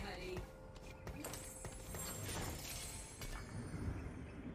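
Soft chimes and clashing effects from a fantasy battle game sound faintly.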